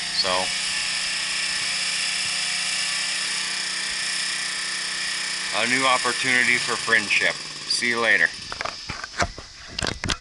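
A riding lawn mower engine hums steadily in the distance.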